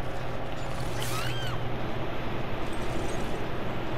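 A blade swings through the air with a sharp whoosh.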